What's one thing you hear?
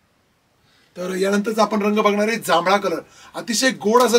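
A man speaks clearly and with animation into a close microphone.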